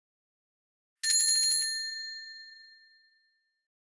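A small bell chimes brightly and rings out.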